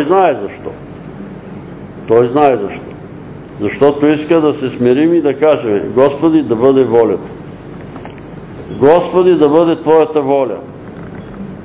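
An elderly man speaks slowly and calmly in pauses.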